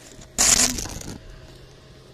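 A dog licks wetly and slurps close by.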